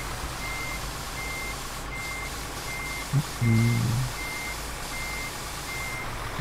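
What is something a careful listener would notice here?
A truck's reversing alarm beeps steadily.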